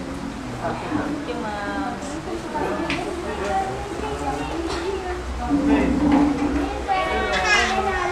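A young woman talks cheerfully nearby.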